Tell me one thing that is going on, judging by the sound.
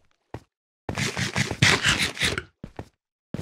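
Crunchy eating sounds chomp quickly.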